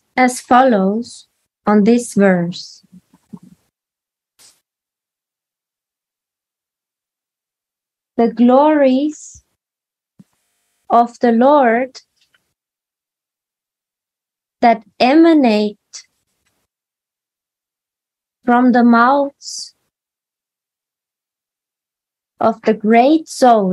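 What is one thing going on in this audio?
A woman sings short phrases, heard through an online call, with pauses between them.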